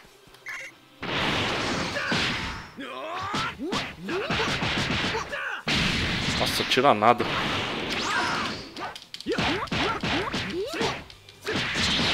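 Punches and kicks land with heavy, sharp thuds.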